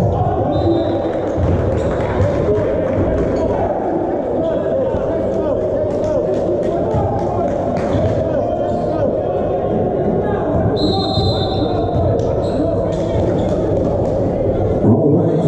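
A volleyball is struck hard by hand.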